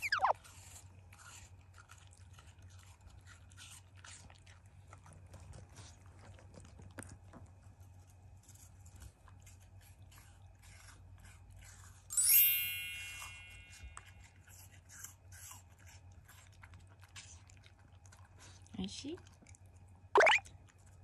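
A dog crunches a crisp snack with its teeth.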